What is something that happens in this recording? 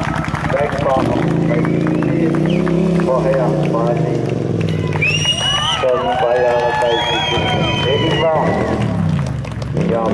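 A motorcycle engine roars past, rising and falling in pitch.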